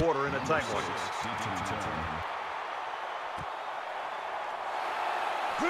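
A crowd cheers in a large stadium.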